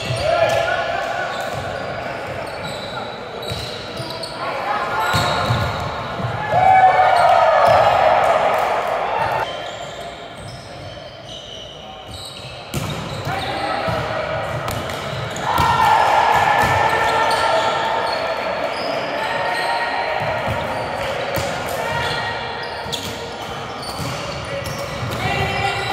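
A volleyball is struck with sharp smacks, echoing in a large hall.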